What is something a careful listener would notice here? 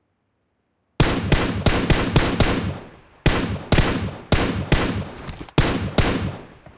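A rifle fires in rapid bursts.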